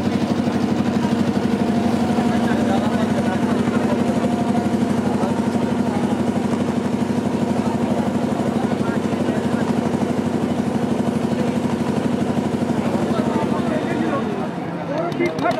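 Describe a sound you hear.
A boat engine chugs steadily close by.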